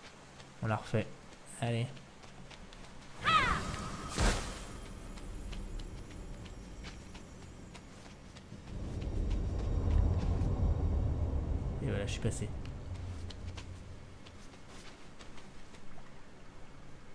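Light footsteps patter on stone.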